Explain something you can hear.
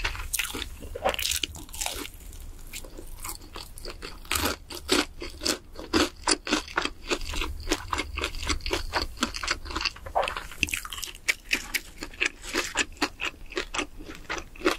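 A young woman chews crunchy fried food close to a microphone, with loud crisp crunches.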